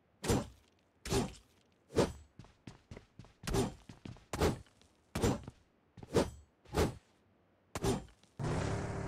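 Heavy footsteps thud on wooden floors and stairs.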